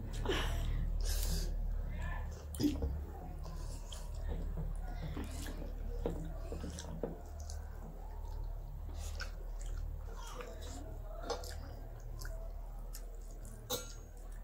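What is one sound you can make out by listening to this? Fingers squelch and mix soft food on metal plates.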